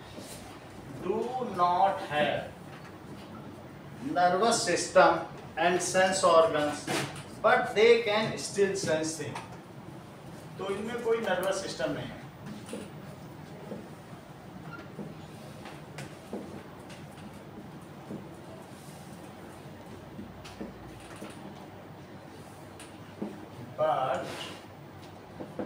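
A man speaks calmly nearby, as if teaching.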